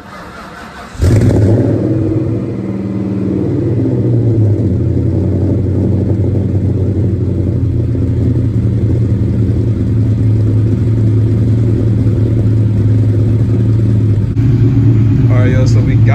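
A car engine idles with a deep, steady exhaust rumble.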